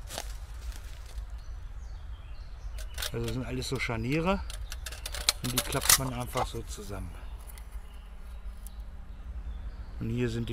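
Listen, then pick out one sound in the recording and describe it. A metal stove clinks and rattles in a man's hands.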